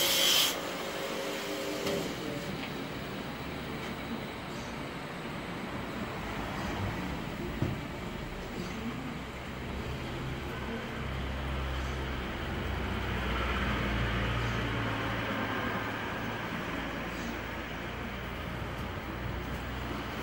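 A grinding wheel hums and whirs steadily.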